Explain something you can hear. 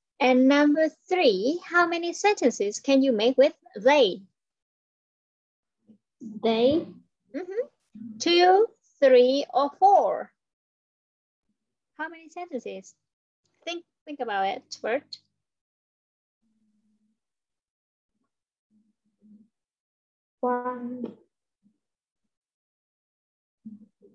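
A young girl speaks through an online call.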